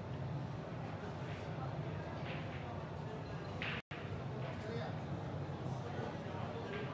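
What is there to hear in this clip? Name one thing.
Billiard balls clack together.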